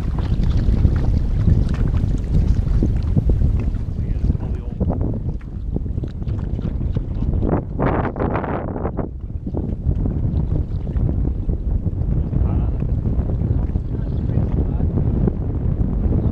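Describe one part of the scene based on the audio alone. Water laps against a small boat's hull.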